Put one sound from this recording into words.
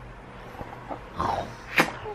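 A kiss smacks softly.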